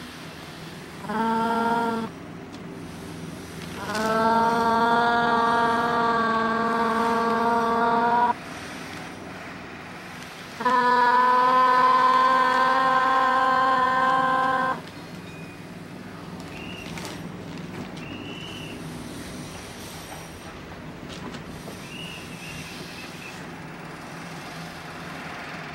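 An electric fan whirs steadily.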